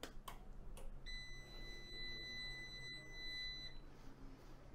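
An electronic device gives a steady beep.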